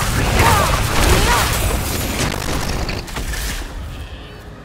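Heavy blows thud and crunch in a fight.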